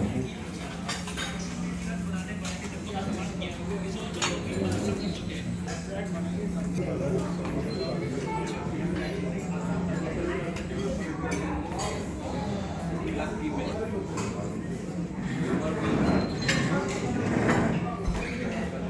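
People chat quietly in the background of a busy room.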